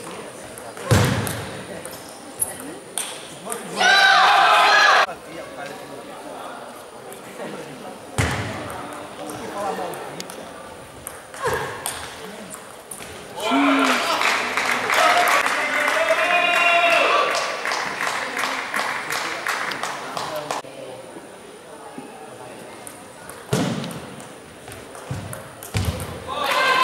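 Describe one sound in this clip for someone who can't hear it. A ping-pong ball clicks back and forth off paddles and a table.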